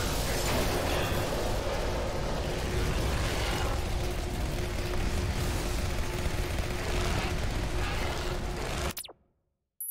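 Fires roar and crackle amid a loud, deep rumble.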